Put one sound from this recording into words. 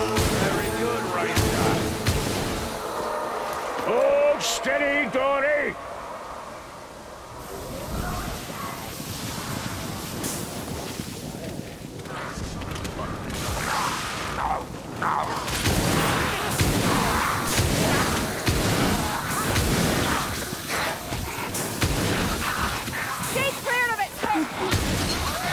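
Guns fire in sharp blasts.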